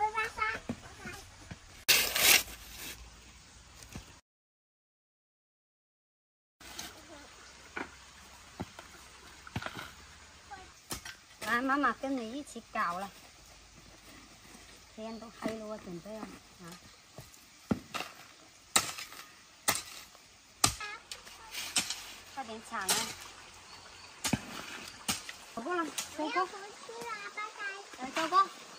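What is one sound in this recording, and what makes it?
Shovels scrape and dig into dry soil.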